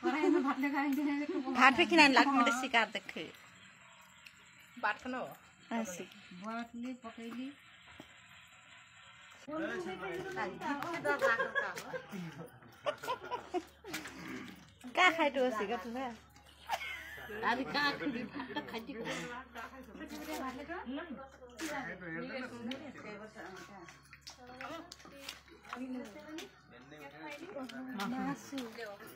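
Young people and children talk and chatter nearby.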